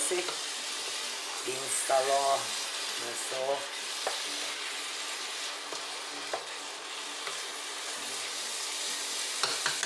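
A wooden spoon stirs and scrapes through thick food in a pot.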